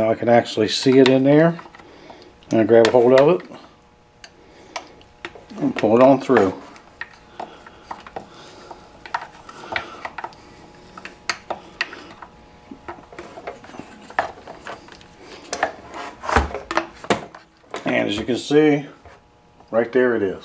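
A metal tool clicks and scrapes against hard plastic.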